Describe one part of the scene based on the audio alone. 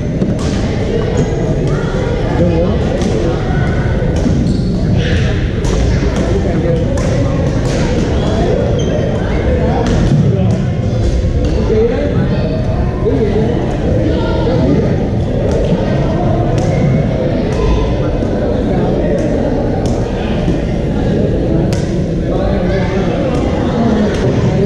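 Shoes squeak on a hard floor.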